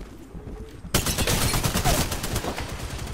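An automatic rifle fires in a rapid burst.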